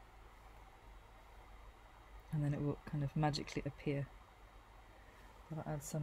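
A fine brush strokes softly on paper.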